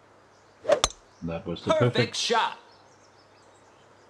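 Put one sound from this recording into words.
A golf ball is hit with a sharp smack.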